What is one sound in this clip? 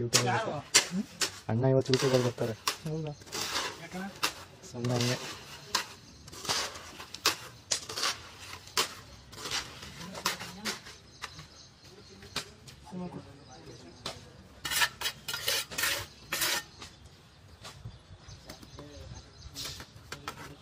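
Steel rods clink and rattle against each other.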